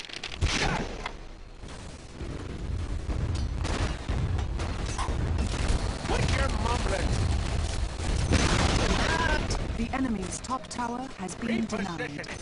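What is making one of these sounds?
Game battle effects clash and burst.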